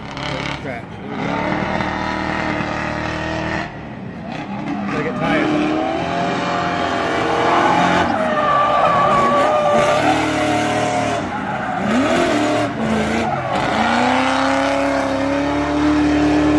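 Race car engines roar and rev loudly as cars speed around a track outdoors.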